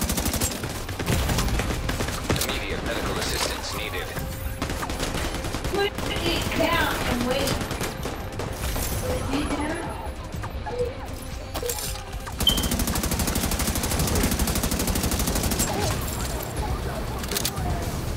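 Explosions boom with a deep roar.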